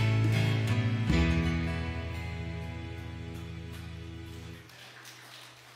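An acoustic guitar strums a final chord that rings out and fades.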